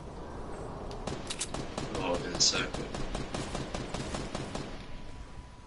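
Video game gunshots crack in rapid bursts.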